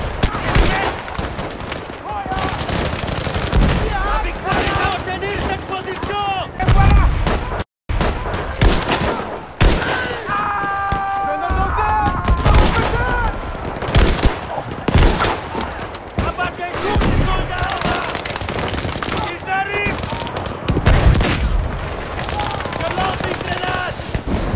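Gunshots crack repeatedly, some close and some far off.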